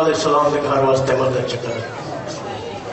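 An elderly man speaks with emotion into a microphone over loudspeakers.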